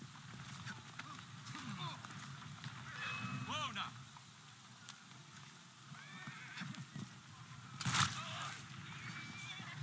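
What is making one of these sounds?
Wheels of a horse-drawn carriage rattle over cobblestones.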